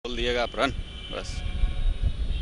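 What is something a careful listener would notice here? A man speaks briefly into a microphone outdoors.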